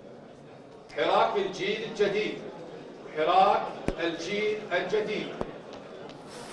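A man reads out clearly through a microphone.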